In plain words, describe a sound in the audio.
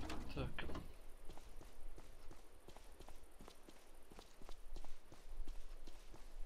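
Footsteps crunch on a road at a steady walking pace.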